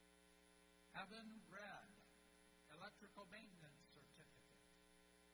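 A man announces names over a loudspeaker in a large echoing hall.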